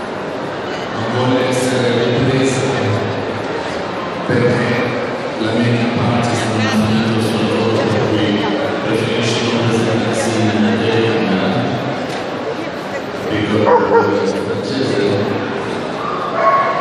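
A man speaks through a loudspeaker, echoing in a large hall.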